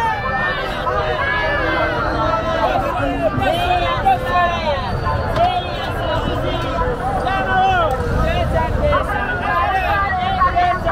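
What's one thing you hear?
Many men and women talk all around in a busy outdoor crowd.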